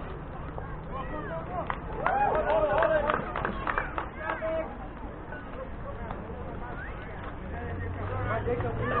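Young players shout and cheer outdoors across an open field.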